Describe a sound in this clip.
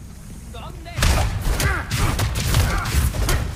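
A heavy blow lands with loud, crunching impacts.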